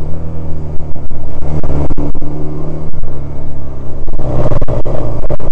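A small twin-cylinder commuter motorcycle engine hums as the bike cruises along, heard from the rider's seat.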